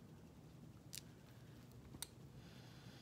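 A glass jar clicks and taps in a hand.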